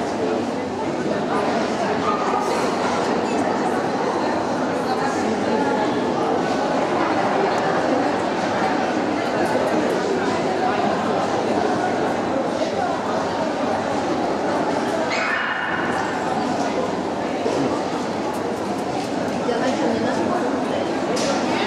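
A crowd of people chatters throughout in a large echoing hall.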